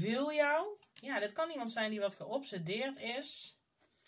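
A card slides and taps onto a table.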